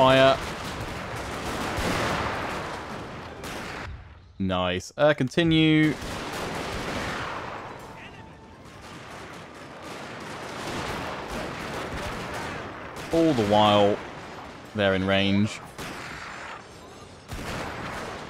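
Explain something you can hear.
Muskets fire in rolling volleys.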